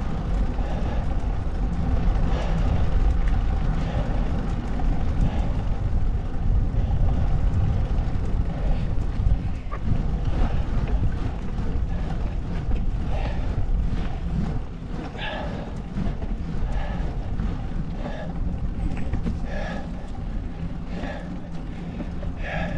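Wind rumbles steadily against a microphone.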